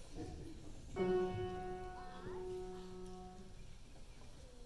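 A piano plays a chord that rings out and fades.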